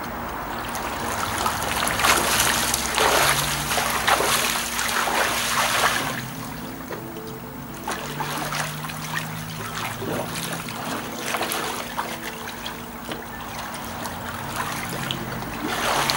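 Water splashes as a man swims.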